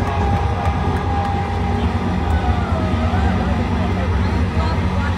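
Loud music with a heavy bass beat booms through loudspeakers.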